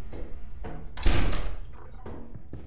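A heavy door opens.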